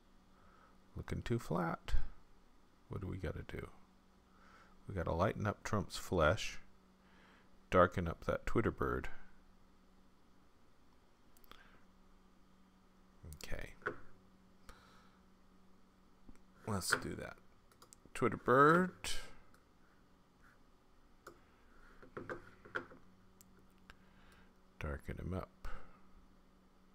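A middle-aged man talks calmly and close to a microphone, in short bursts with pauses.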